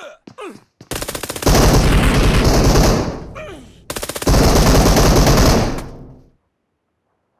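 A smoke grenade hisses loudly.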